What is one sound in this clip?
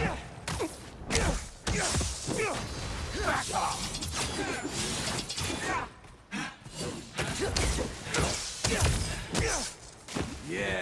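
Electric bursts crackle and fizz.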